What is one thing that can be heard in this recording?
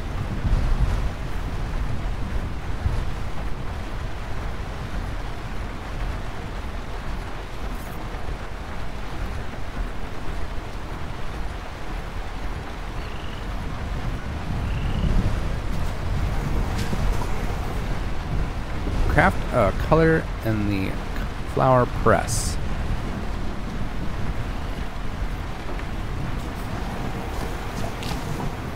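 A vehicle engine rumbles low and steadily.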